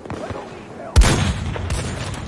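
A rifle fires a single loud, sharp shot.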